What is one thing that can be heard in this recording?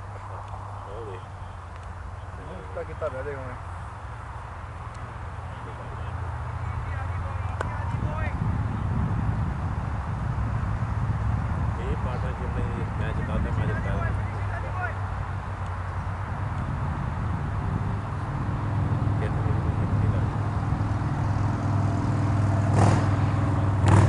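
Wind rumbles steadily across an open field.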